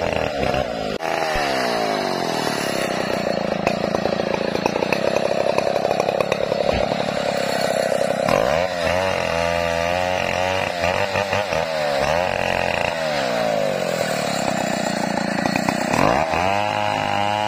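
A chainsaw engine revs up and down, loud and close.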